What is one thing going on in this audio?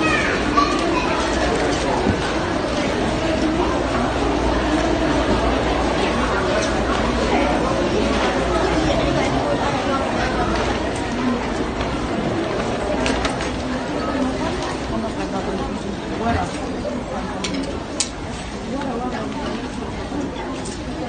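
A crowd of women murmurs and chatters around in a large, echoing indoor space.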